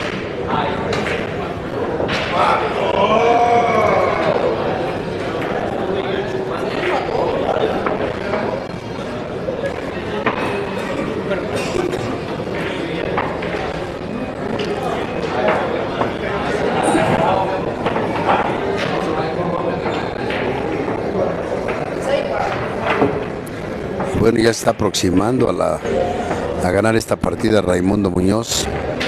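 A crowd of people chatters in the background of a large room.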